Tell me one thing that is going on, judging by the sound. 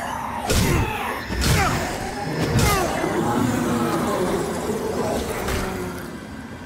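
Swords clash and strike in quick blows.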